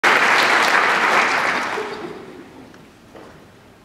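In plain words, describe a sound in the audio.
An audience applauds in a large hall and the applause fades away.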